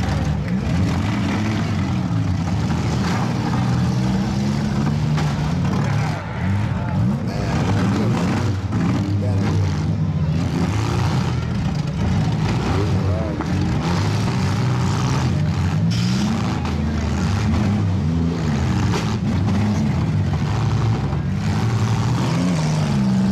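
Cars crash and crunch into each other.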